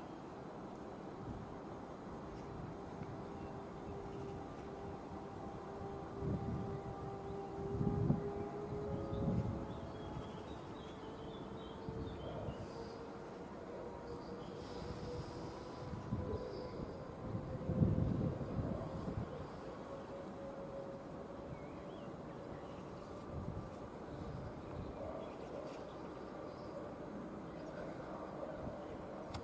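A distant train rumbles along the tracks with a steady, droning hum.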